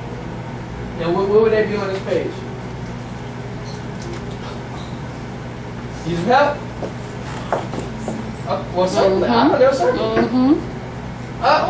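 A man speaks calmly to a class.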